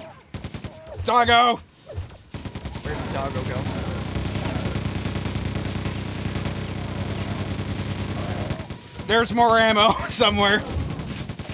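A man talks loudly and excitedly into a microphone.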